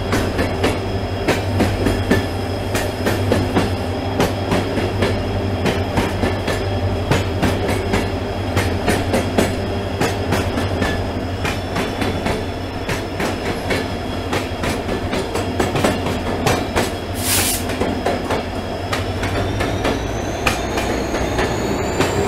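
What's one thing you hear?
Freight wagons clatter and clank past on the rails.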